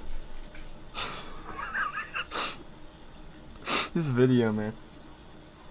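A young man laughs and exclaims loudly into a microphone.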